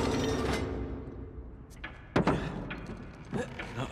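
A large wooden gear creaks as it turns.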